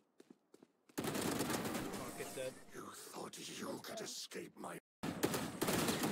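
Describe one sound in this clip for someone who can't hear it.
A rifle fires rapid gunshots.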